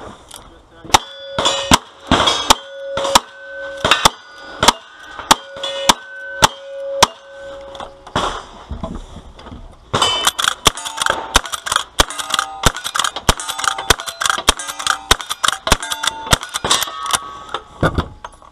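Steel targets ring with a metallic ping after being hit.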